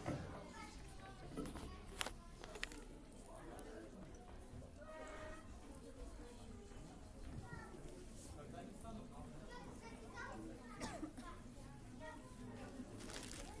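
An elderly man speaks calmly into a microphone, heard in a room.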